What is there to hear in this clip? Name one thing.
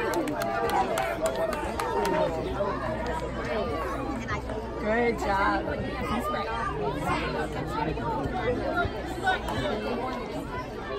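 A crowd of young players and spectators shouts and cheers outdoors.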